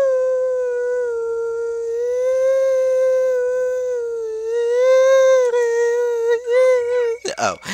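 A steady, wavering electronic tone hums.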